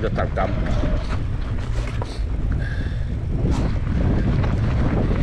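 Bicycle tyres crunch and rattle over rough dirt.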